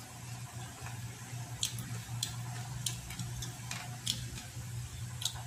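A man chews food with wet smacking sounds close by.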